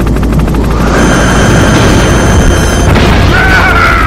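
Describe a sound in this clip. A missile explodes with a loud blast.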